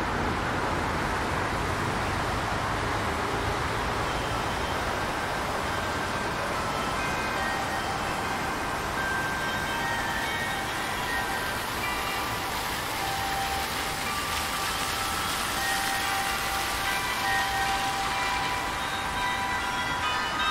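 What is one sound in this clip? A fountain splashes steadily, growing louder up close before fading.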